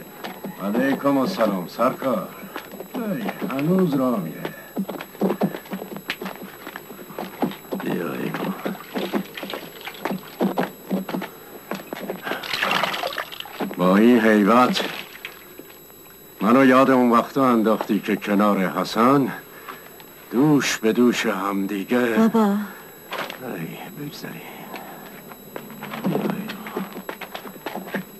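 An elderly man speaks loudly with animation nearby.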